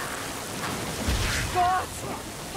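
A blade swings and strikes with a heavy thud.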